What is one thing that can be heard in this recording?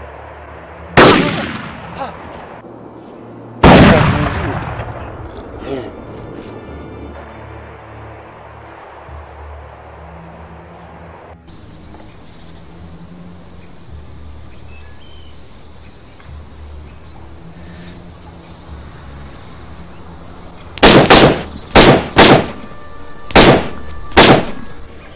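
Rifle shots ring out loudly, one after another, with a sharp echo.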